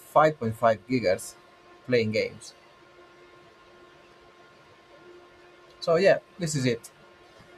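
A man talks casually into a nearby microphone in short bursts.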